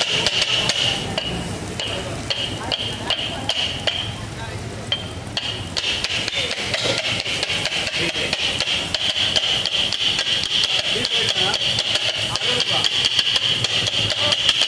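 Metal spatulas clatter rapidly against a hot griddle, chopping food.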